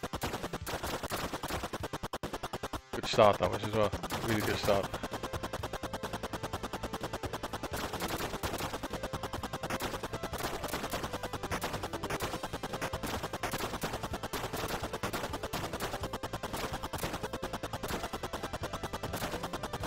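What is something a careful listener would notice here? Rapid electronic shots fire in a steady stream throughout.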